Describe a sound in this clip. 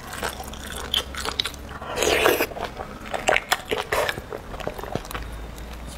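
A metal spoon scrapes inside a hollow bone.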